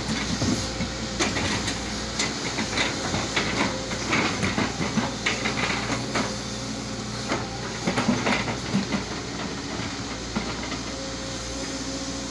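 An excavator bucket scrapes and knocks against dirt and rocks.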